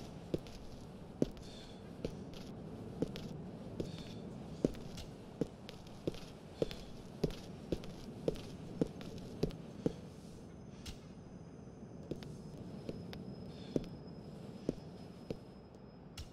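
Footsteps run quickly and evenly on hard ground.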